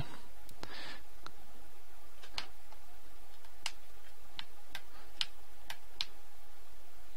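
Short electronic clicks tick out footsteps in a retro computer game.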